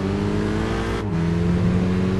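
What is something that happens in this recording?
A racing car engine briefly drops in pitch as it shifts gear.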